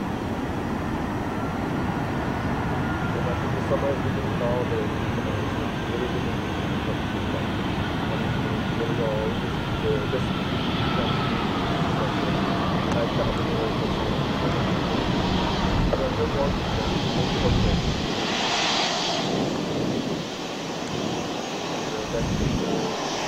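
Jet engines whine with a high pitch.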